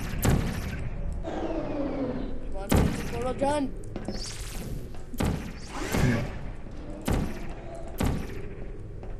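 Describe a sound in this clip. A futuristic energy gun fires with sharp zapping bursts.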